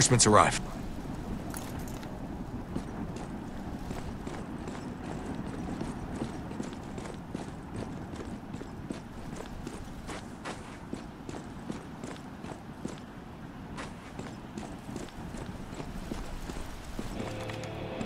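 Footsteps crunch on sand at a steady walking pace.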